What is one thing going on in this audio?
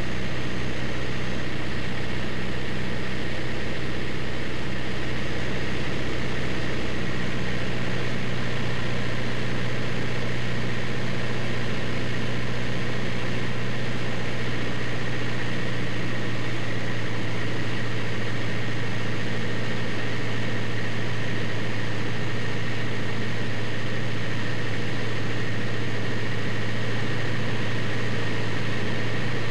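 A small plane's engine drones steadily and loudly up close.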